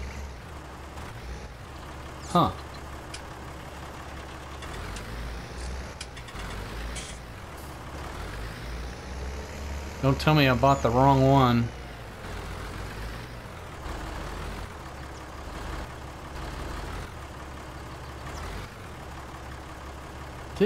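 A tractor engine rumbles steadily at low speed.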